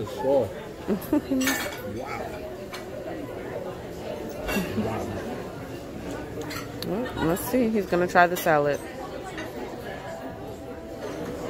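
Diners chatter in the background of a busy room.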